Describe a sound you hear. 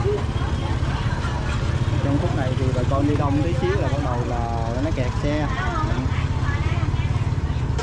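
Motorbike engines idle and rumble close by.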